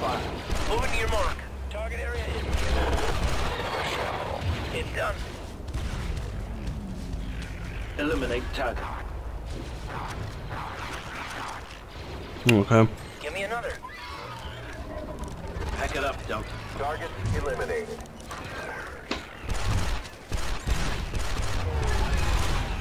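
Laser guns fire in quick zapping bursts.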